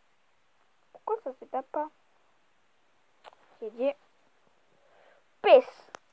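A boy speaks quietly, close to the microphone.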